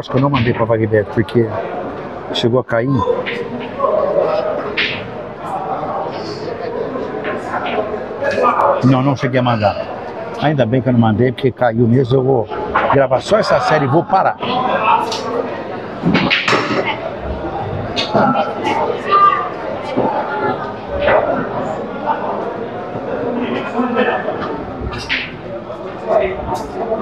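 A crowd of men chatters in a large room.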